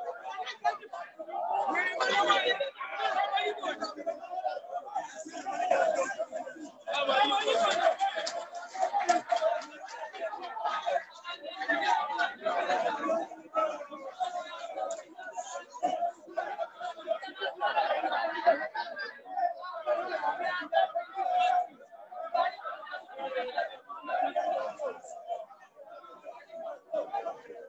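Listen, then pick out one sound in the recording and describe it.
A crowd of men chants and shouts nearby outdoors.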